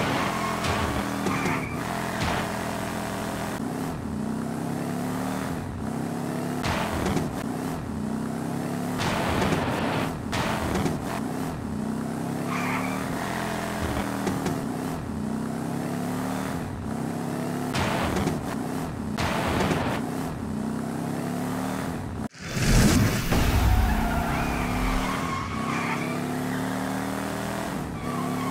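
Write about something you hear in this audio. A race car engine whines and revs, rising and falling in pitch.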